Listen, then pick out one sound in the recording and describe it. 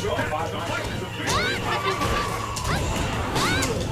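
Blows land with sharp thuds and smacks in a video game fight.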